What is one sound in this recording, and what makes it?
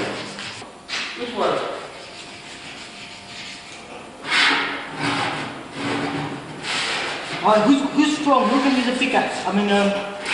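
A metal scriber scratches across a metal sheet.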